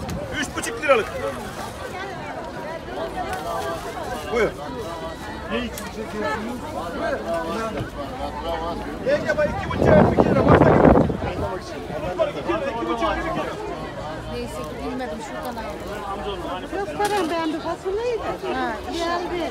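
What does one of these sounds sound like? A crowd of men and women chatter and call out all around outdoors.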